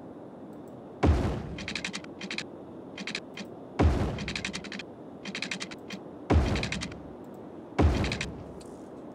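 Short thudding building sounds play as railway track is laid down.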